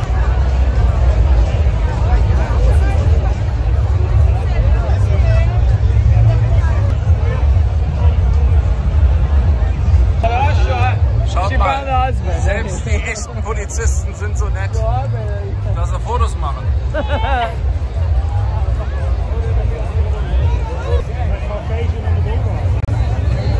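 A large outdoor crowd chatters all around.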